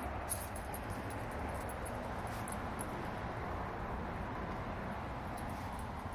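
A dog's paws crunch on gravel.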